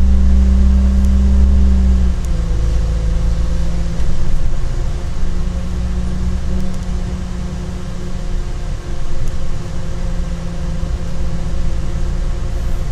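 A train rattles and rumbles over the tracks.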